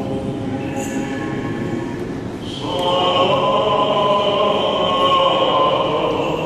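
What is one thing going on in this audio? A choir of men chants together in a slow, sustained drone, echoing in a large reverberant hall.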